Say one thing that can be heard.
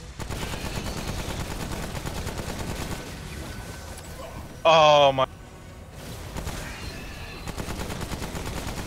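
A gun fires in rapid bursts.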